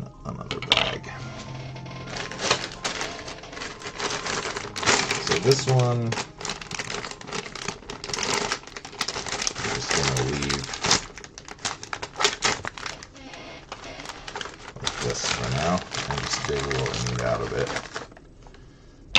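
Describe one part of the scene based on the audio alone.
Plastic bricks rattle as a hand sifts through a tray.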